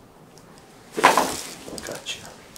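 A treatment table drops with a sharp clunk.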